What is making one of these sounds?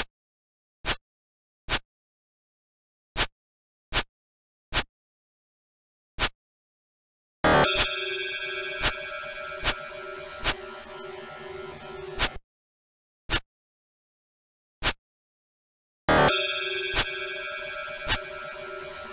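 Short electronic game blips sound now and then.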